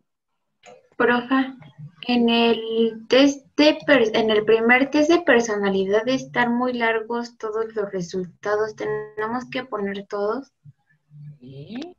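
A boy speaks steadily, heard through an online call.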